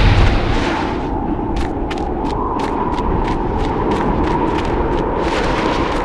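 Wind howls steadily through a sandstorm.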